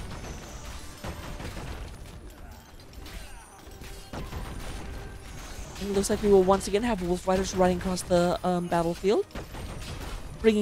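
Magic spells and weapons clash in a busy fantasy battle.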